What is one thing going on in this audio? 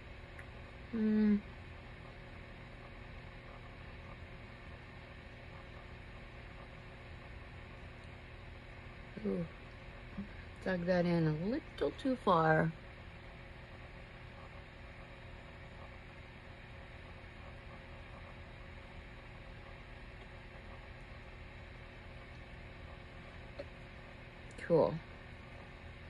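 An older woman speaks briefly and calmly close to a microphone, with long pauses.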